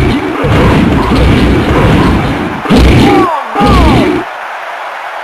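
A stadium crowd cheers and roars loudly.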